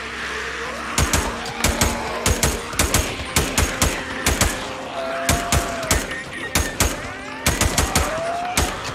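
A rifle fires in rapid bursts of loud shots.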